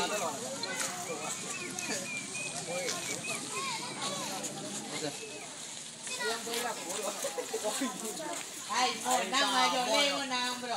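Several men talk and call out nearby.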